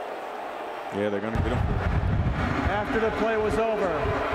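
A man announces a penalty over a stadium loudspeaker, echoing.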